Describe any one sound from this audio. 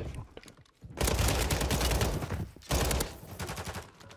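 Rapid gunfire bursts loudly nearby.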